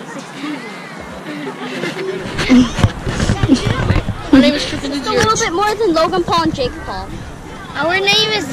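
Young boys talk and laugh close by, outdoors.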